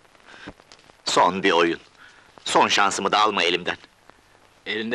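An elderly man speaks with emotion, close by.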